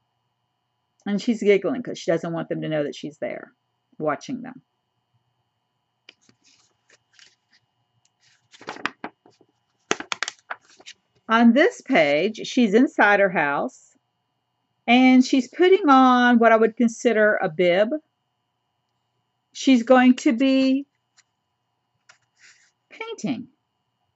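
An older woman reads aloud slowly and expressively, close by.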